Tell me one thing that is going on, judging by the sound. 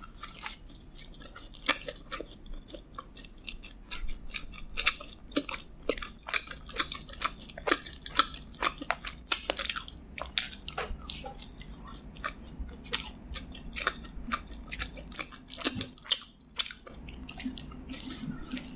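A young woman bites into a crunchy pastry.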